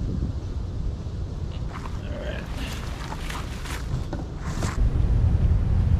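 A rubber hose scrapes and rustles over dry leaves and grass.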